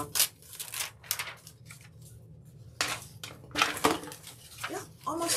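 A plastic sheet crinkles and rustles as it is handled.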